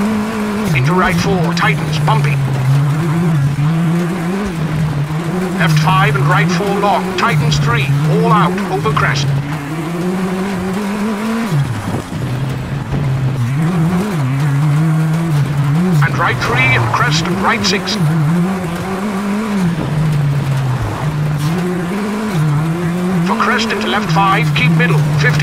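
A rally car engine roars steadily, rising and falling in pitch as it shifts gears.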